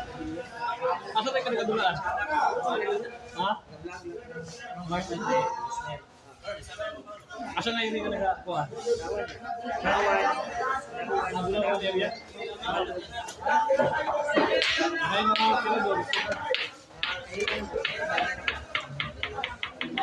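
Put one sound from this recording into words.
A crowd of men talk and call out loudly.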